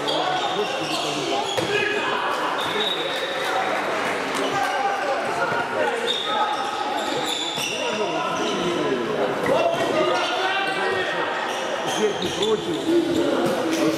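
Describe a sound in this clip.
A handball bounces on a wooden court.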